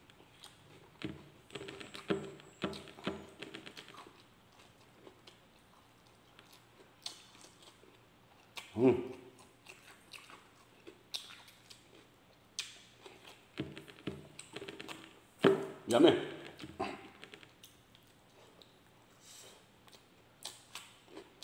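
A man chews food noisily with his mouth close by.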